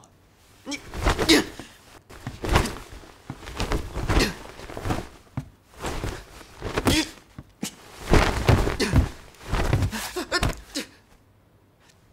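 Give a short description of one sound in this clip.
A young man grunts with effort.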